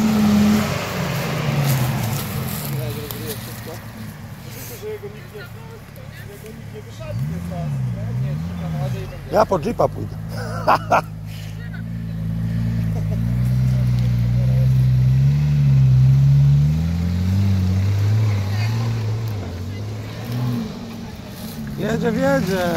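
An off-road vehicle's engine rumbles and revs as it climbs a rough dirt track.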